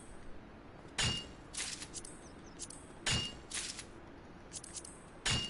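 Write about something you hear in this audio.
A pickaxe strikes rock with sharp, ringing clinks.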